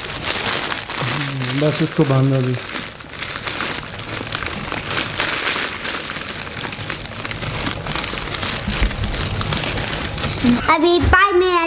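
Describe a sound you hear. Plastic crinkles and rustles close by.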